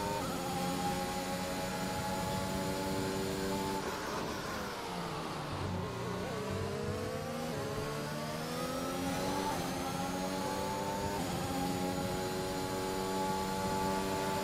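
A racing car engine screams at high revs, dropping in pitch as it brakes and rising again as it speeds up.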